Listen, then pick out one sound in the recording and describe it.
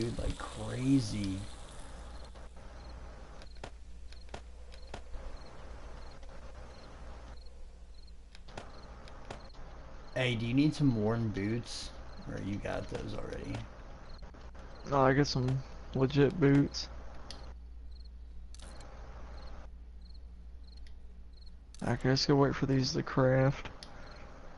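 A young man talks casually and close into a microphone, in short bursts.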